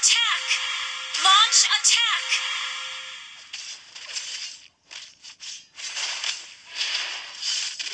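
Game sound effects of magic attacks whoosh and chime.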